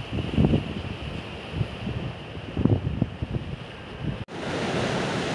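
Wind gusts rumble across the microphone outdoors.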